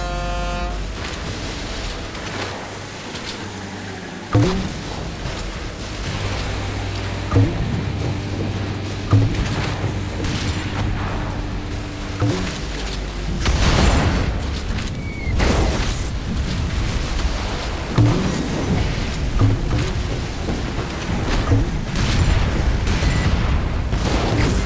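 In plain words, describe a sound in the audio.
A boat engine hums steadily as a speedboat races over water.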